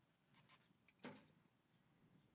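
An arrow thuds into a target.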